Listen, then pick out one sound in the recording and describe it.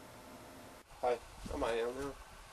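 A young man speaks into a phone close by.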